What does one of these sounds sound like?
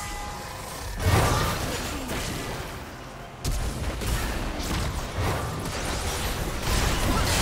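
Sudden magic blasts and impacts burst out.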